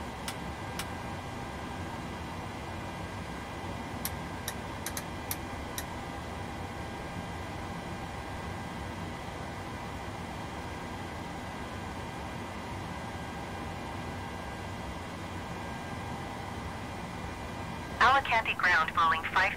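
An aircraft's systems hum steadily.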